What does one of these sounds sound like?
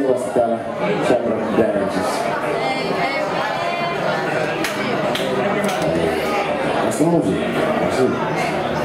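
A band plays rock music loudly.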